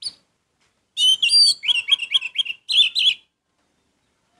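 A small bird sings a quick, bright run of whistled notes close by.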